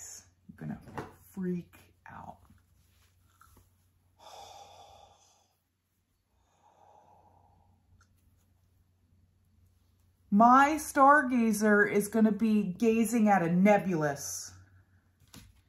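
A woman speaks with animation close to the microphone.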